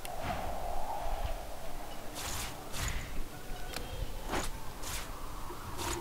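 Short soft clicks sound as items are moved.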